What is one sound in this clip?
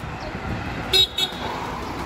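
A car drives past on a street.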